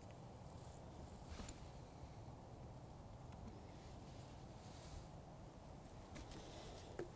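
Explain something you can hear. A ferro rod scrapes sharply a few times as sparks are struck.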